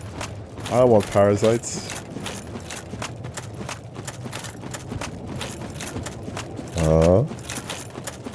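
A young man speaks loudly and drawn out through a microphone.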